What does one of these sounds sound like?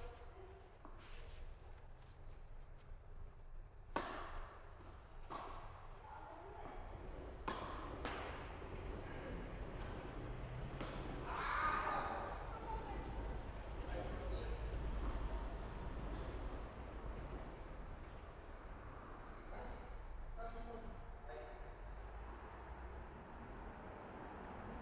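Tennis balls are struck with rackets, with sharp pops echoing in a large hall.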